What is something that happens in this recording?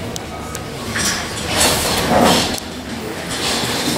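Chairs scrape and shuffle as people sit down.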